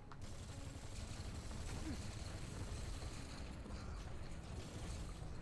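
Gunfire from a video game rattles rapidly.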